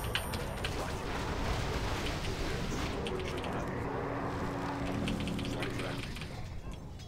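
Video game battle effects clash and crackle.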